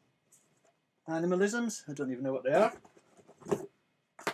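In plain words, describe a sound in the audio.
Cardboard sleeves rustle as a man handles them.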